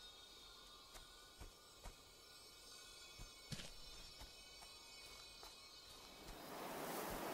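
Footsteps crunch over leaves and grass.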